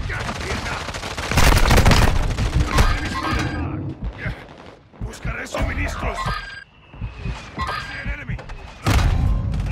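Gunfire bursts loudly from a game.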